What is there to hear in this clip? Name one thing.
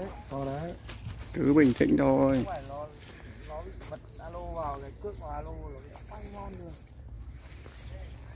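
A man talks loudly and with animation close by, outdoors.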